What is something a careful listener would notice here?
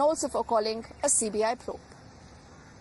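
A woman speaks clearly into a microphone, reporting.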